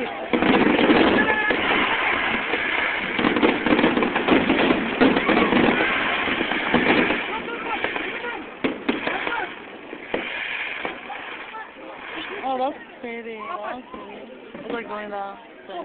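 Fireworks bang and crackle in the open air.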